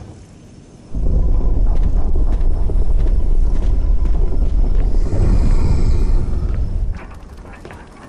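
A heavy stone slab grinds and rumbles loudly as it moves.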